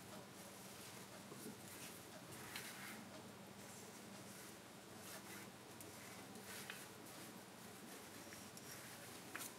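A knife scrapes and shaves thin curls from wood.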